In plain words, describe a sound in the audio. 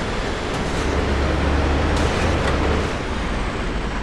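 A vehicle engine rumbles low and steady.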